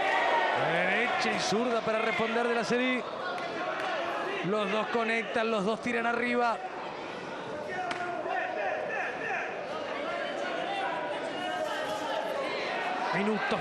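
Boxing gloves thud against bodies.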